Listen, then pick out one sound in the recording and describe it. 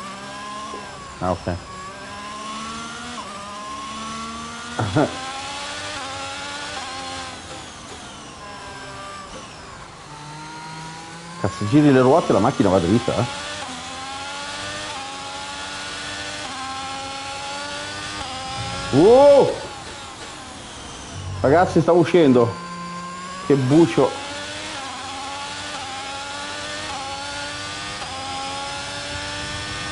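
A racing car engine whines and revs up and down through gear changes.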